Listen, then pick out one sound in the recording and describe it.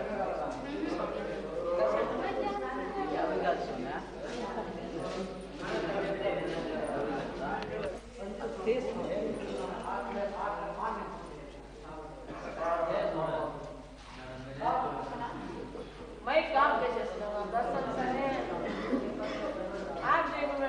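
A crowd of men talk and murmur close by.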